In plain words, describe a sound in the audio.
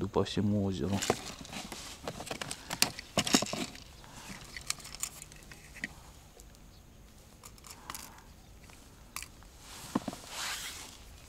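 Plastic tackle box lids click and rattle as they are handled.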